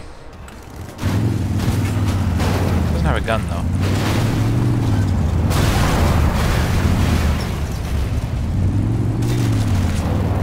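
A vehicle engine rumbles and revs.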